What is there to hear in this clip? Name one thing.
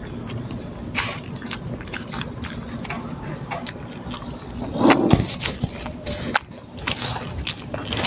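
Crisp food crunches as a young man eats.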